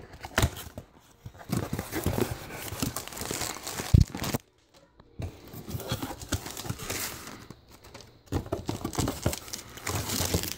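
Cardboard scrapes and rustles as a box is handled.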